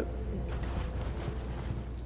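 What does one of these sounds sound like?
Lightning crackles and booms.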